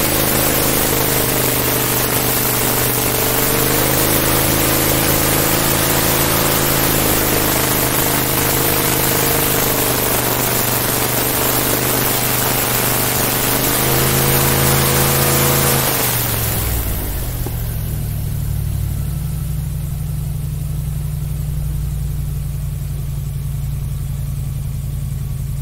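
An airboat's propeller engine roars loudly.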